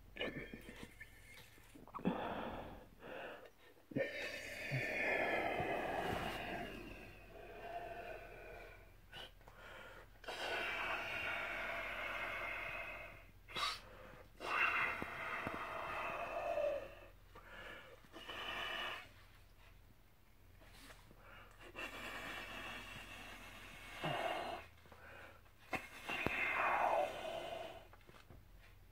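A man blows air into a balloon in long, forceful breaths.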